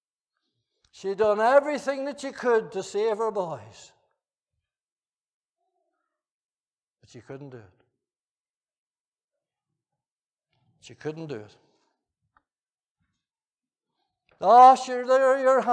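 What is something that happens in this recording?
An elderly man preaches with animation through a microphone in a large echoing hall, pausing often.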